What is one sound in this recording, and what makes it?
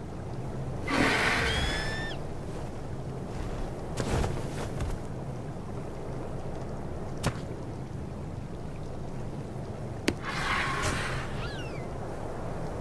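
A large parrot squawks with shrill, gliding calls.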